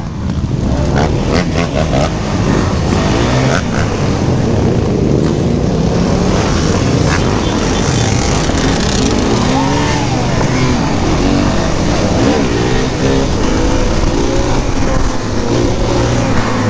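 A quad bike engine roars and revs up and down close by.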